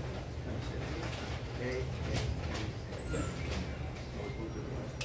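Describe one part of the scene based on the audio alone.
A double bass plucks a low line.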